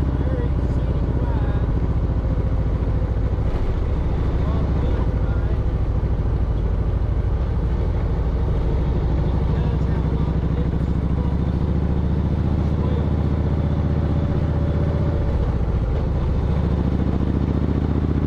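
A motorcycle engine hums steadily up close while riding.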